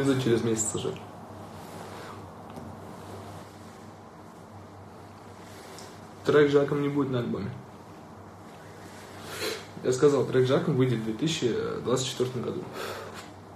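A young man talks casually and close to a phone microphone, in bursts.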